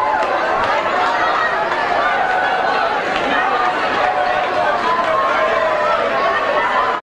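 A band plays loudly on stage, heard from within the audience.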